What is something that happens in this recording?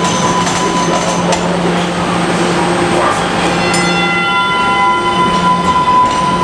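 A train rolls along the tracks with a loud steady rumble and squealing wheels.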